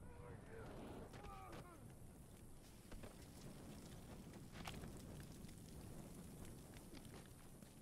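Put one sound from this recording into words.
Flames crackle and roar close by.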